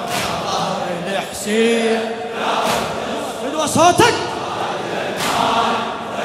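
A man chants loudly through a microphone in a large echoing hall.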